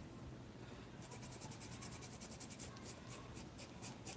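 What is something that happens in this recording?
A stiff brush dabs quickly and scratchily against fabric.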